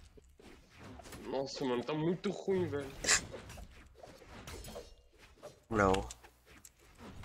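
Cartoon fight sound effects whoosh and smack in quick bursts.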